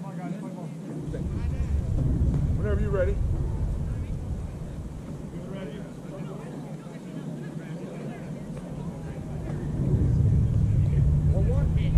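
Wind rumbles outdoors in gusts.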